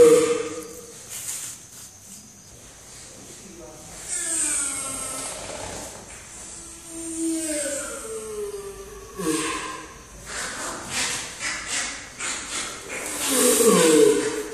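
A giant tortoise groans in long, drawn-out moans that fall in pitch.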